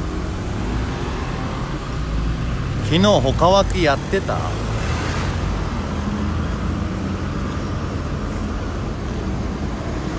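A heavy truck drives past with a deep engine rumble.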